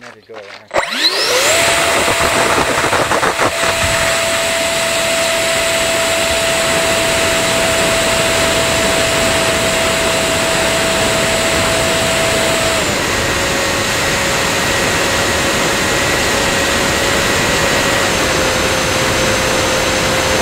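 A small model plane's electric motor whines up to a steady high pitch.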